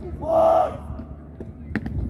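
Boots stamp on stone as a guard marches.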